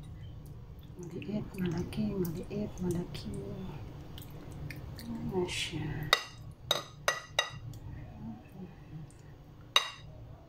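A ladle spreads thick sauce with soft wet squelching.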